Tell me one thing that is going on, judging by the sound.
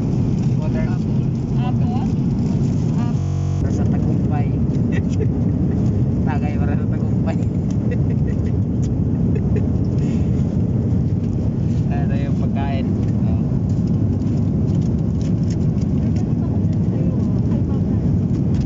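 A steady, low roar of jet engines fills an aircraft cabin.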